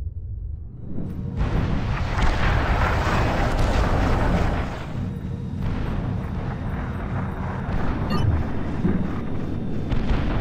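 Explosions and gunfire rumble in a game battle.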